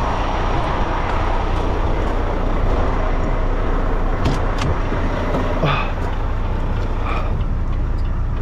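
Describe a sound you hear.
A truck's engine idles with a low, steady rumble.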